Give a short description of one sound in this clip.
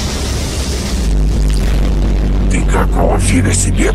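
Laser beams hum and roar loudly.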